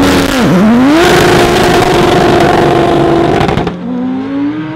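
Car engines roar loudly as the cars launch away.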